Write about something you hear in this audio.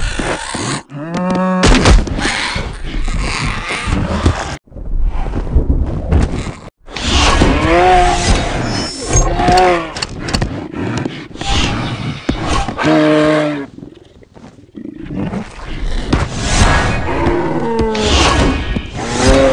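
A large winged creature screeches loudly.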